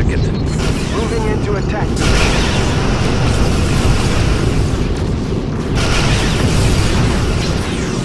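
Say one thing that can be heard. A starship engine rumbles steadily.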